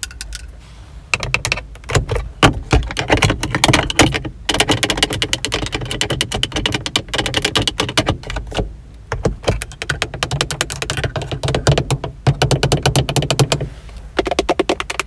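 Long fingernails tap and scratch quickly on hard plastic, very close.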